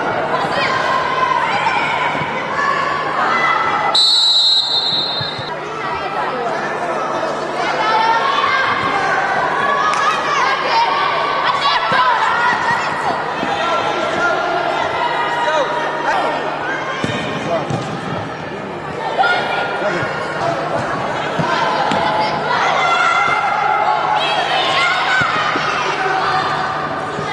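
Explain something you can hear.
Young women shout to each other while playing in a large echoing hall.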